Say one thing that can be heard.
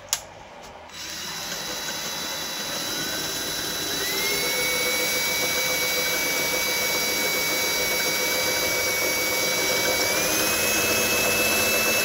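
A power drill whirs steadily and rises in pitch as it bites.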